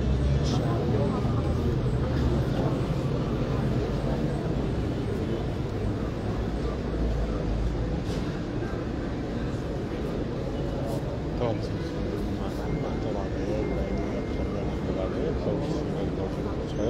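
A crowd of men and women murmur and chatter nearby outdoors.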